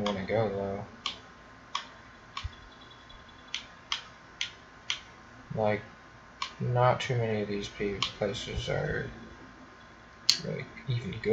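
Short menu clicks tick one after another as a cursor moves.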